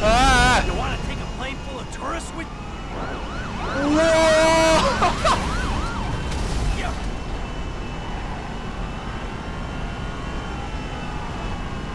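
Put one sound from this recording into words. Jet engines of a taxiing airliner roar nearby.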